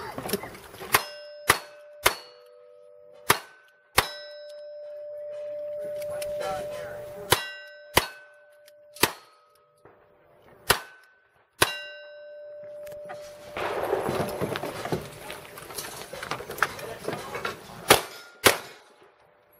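A pistol fires more shots at a slower, uneven pace.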